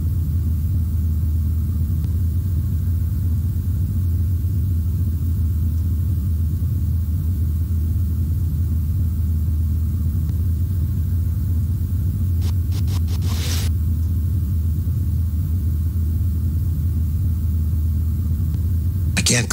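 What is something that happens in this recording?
A large machine hums low and steadily.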